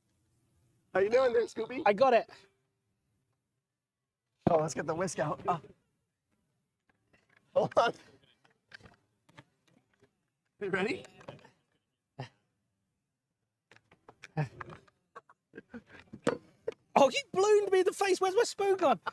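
A second man talks and laughs loudly.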